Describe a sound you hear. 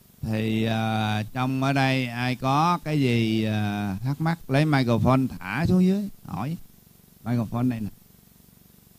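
A middle-aged man speaks calmly and at length into a microphone, close by.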